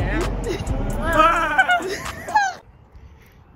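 A young man shouts excitedly up close.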